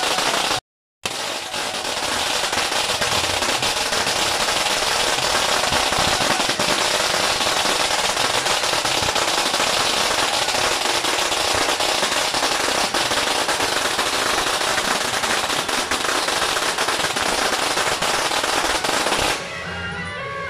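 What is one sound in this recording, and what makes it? Firecrackers crackle and bang rapidly nearby.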